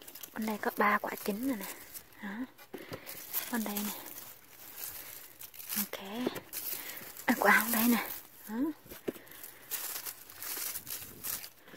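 Leaves and stems rustle as a hand picks tomatoes from a plant.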